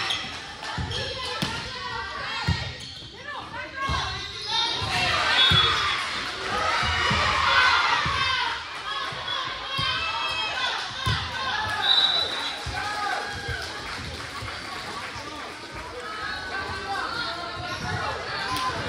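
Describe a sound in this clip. Girls shout and call to each other on the court.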